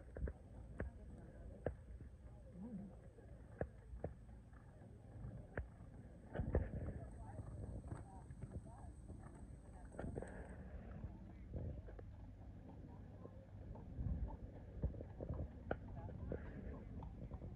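Horse hooves thud on soft sand in a steady gallop.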